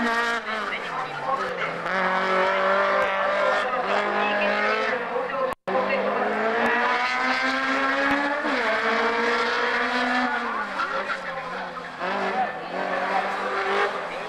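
A racing car engine roars loudly, revving up and down as the car drifts through the bends.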